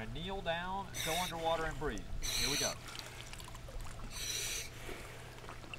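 A scuba regulator hisses in short bursts.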